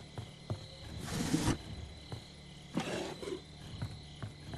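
A wooden drawer scrapes open and shut.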